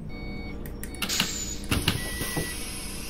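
Bus doors open with a hiss and clunk.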